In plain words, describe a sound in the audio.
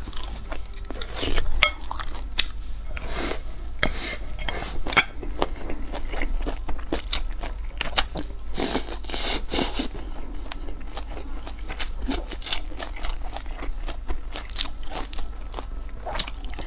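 A young woman chews food wetly, close up.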